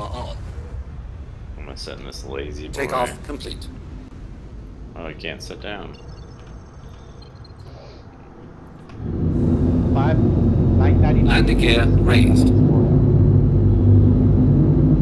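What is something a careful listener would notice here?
A spaceship engine hums low, then swells into a loud, steady roar.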